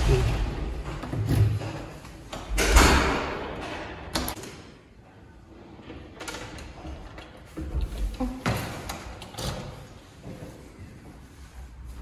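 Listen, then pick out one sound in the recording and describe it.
A door handle clicks and a door opens.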